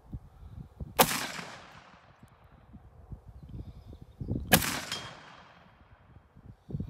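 A rifle fires single loud shots outdoors, each echoing away.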